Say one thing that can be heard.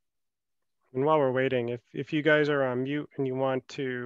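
A man speaks calmly through a headset microphone on an online call.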